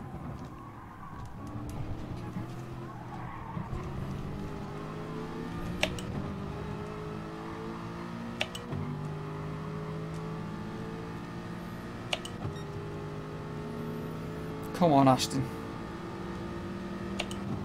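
A racing car engine roars steadily, climbing in pitch and dropping briefly at each gear change.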